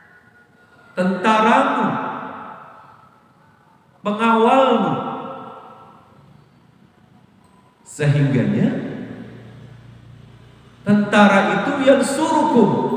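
A man speaks with animation into a microphone, his voice echoing in a large hall.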